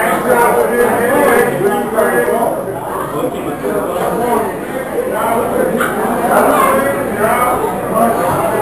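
A crowd of young men and women chatters loudly nearby.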